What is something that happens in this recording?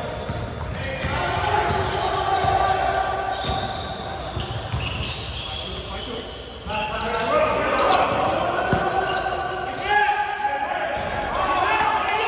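Men shout and call out to each other across the hall.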